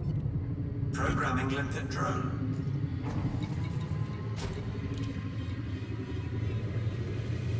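Short electronic menu beeps and clicks sound.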